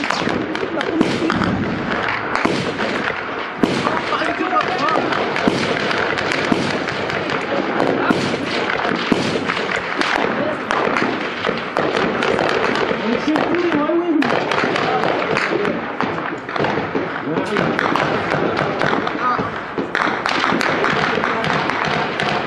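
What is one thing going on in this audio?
Gunshots crack sharply several times nearby.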